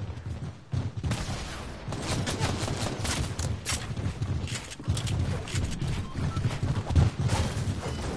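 Building pieces snap into place with sharp, rapid clacks.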